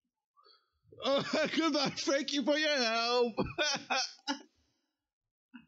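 A young man laughs heartily into a close microphone.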